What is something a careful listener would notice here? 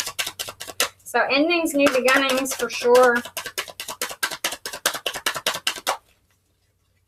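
Playing cards riffle and flutter rapidly as they are shuffled.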